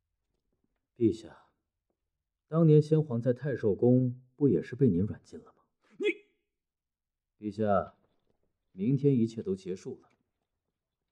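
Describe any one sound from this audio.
A man answers in a calm, low voice, close by.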